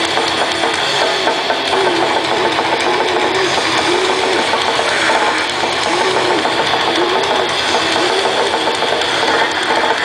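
Loud distorted electric guitars play heavy rock through amplifiers.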